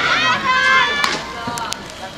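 A bat strikes a softball with a sharp crack.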